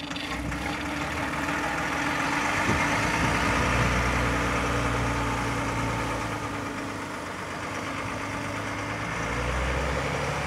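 A heavy truck engine rumbles as the truck drives off outdoors.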